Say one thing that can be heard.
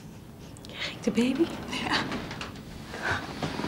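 A middle-aged woman speaks calmly.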